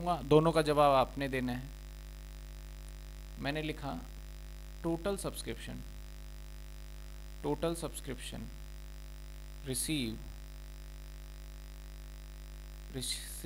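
A man speaks calmly in short phrases, as if explaining.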